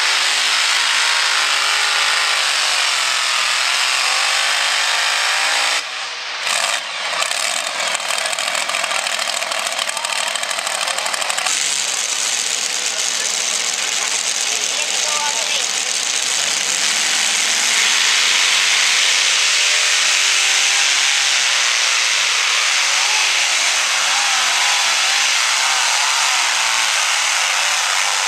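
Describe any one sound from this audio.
A pulling tractor's engine roars loudly and rumbles.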